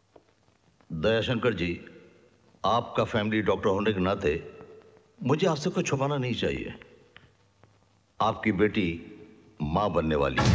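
A middle-aged man speaks firmly and with animation, close by.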